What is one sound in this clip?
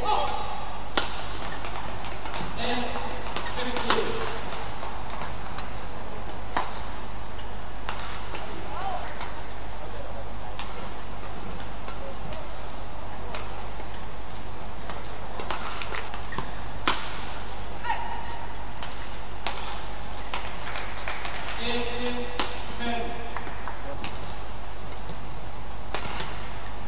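A shuttlecock is struck sharply by rackets, back and forth at a quick pace.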